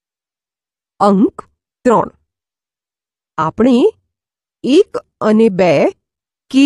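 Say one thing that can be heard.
A woman speaks clearly and calmly, as if teaching a class.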